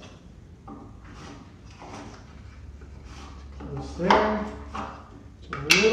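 A chisel scrapes wood.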